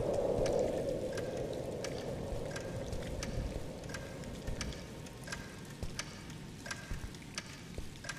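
Footsteps thud slowly and evenly across a wooden floor.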